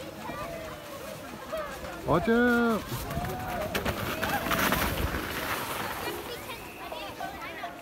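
A snow tube scrapes and hisses down a snowy slope.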